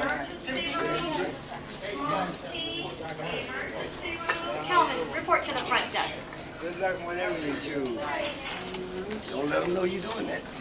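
Several men and women talk and chatter nearby.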